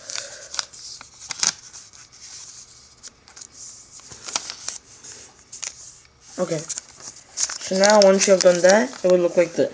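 Hands fold and crease a sheet of origami paper with a crisp rustle.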